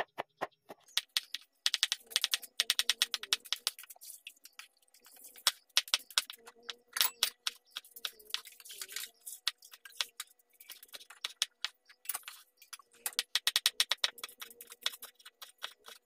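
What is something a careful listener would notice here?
A knife chops quickly on a wooden board.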